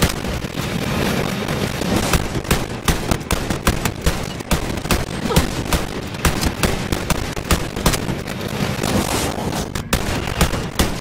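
Guns fire rapid bursts of shots.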